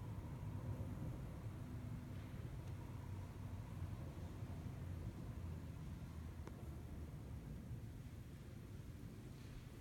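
An organ plays soft, low sustained notes in a large echoing room.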